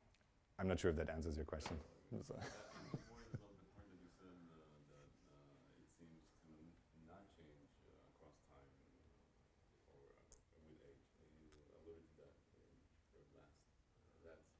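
A man speaks calmly to an audience, heard through a microphone.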